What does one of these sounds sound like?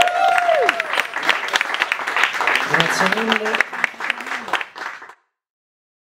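Acoustic guitars strum a lively tune.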